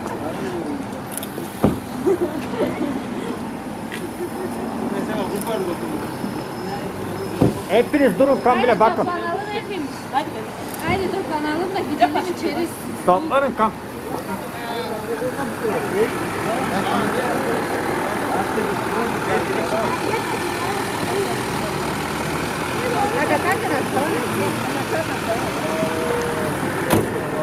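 Several men, women and children talk and call out with excitement close by, outdoors.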